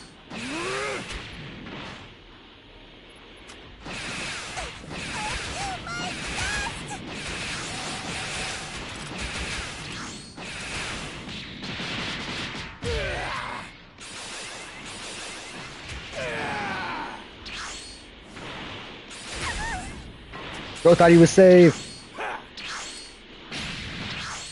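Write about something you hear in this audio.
Energy blasts whoosh and crackle again and again.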